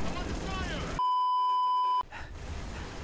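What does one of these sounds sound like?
A steady high electronic test tone sounds briefly.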